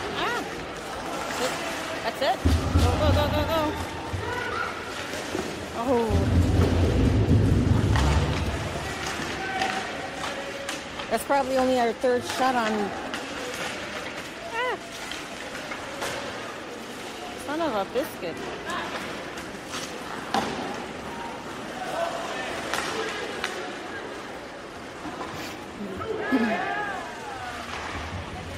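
Players shout to each other across the ice.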